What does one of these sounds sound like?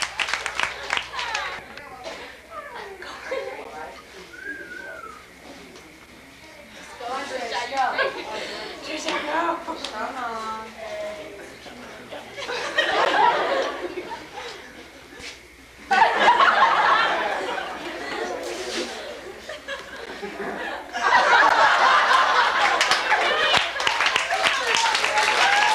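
A crowd laughs and cheers in a room.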